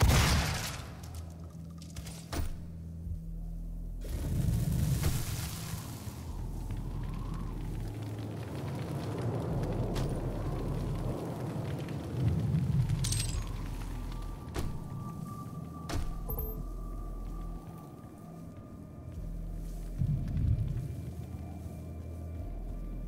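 Heavy footsteps thud steadily on rocky ground.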